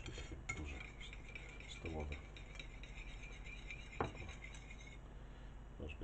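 A whisk beats batter in a bowl with quick, light clicking.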